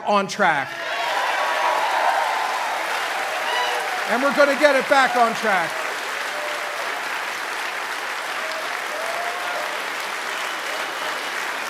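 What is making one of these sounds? A large crowd applauds steadily in a big hall.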